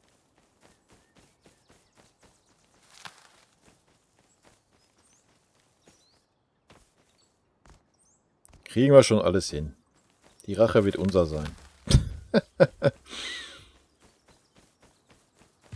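Footsteps tread softly through grass.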